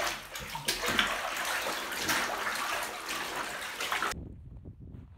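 Hands swish through water.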